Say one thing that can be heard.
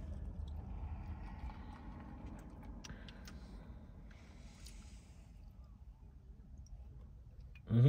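A young man gulps water from a plastic bottle.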